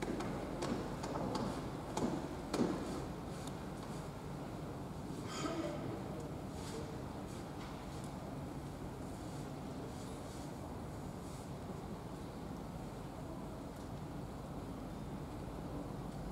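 A large indoor crowd murmurs and calls out in a roomy hall.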